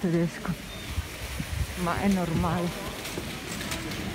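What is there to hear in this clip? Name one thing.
A shopping cart rattles as it is pushed.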